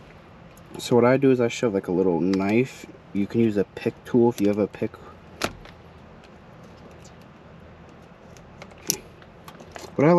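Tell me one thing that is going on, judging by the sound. A small tool clicks and scrapes against plastic.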